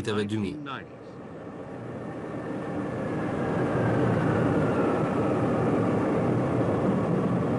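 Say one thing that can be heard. A large jet plane roars loudly as it lands and rolls along a runway.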